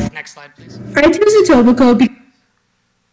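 A young woman talks animatedly through a phone speaker.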